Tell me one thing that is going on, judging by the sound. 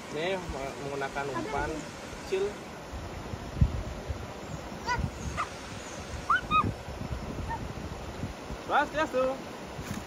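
A shallow stream flows and babbles steadily nearby.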